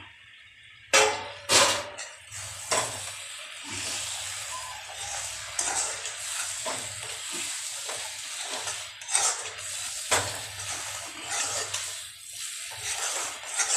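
Food sizzles and fries in a hot pan.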